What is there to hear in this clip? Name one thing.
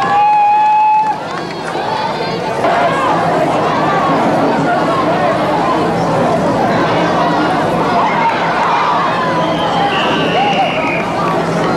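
Young players shout to each other on a field.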